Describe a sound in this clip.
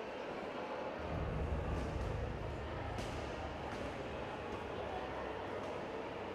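Strikes smack against a padded shield.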